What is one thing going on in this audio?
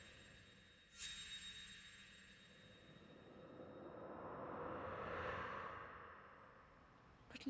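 A magical force roars and whooshes in a swelling rush.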